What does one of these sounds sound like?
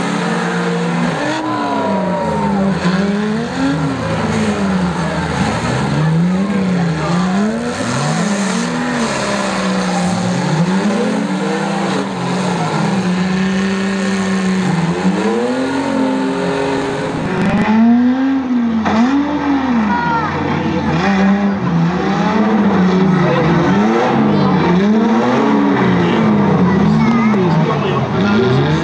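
Car engines rev hard, rising and falling.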